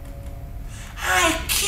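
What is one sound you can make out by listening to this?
A man speaks with animation into a close microphone.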